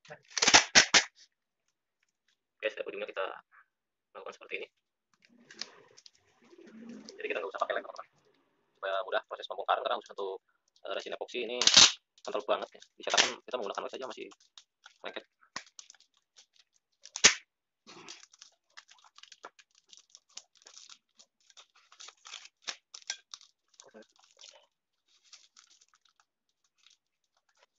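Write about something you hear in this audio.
Hands rustle and crinkle plastic wrapping.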